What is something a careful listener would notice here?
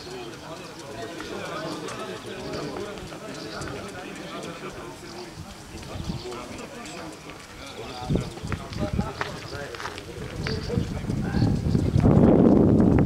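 Several young men talk casually among themselves outdoors.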